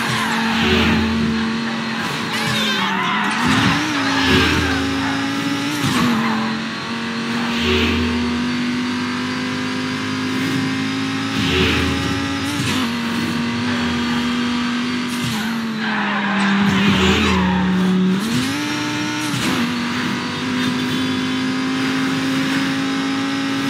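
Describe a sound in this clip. A V12 sports car engine roars at high revs, shifting gears as it races.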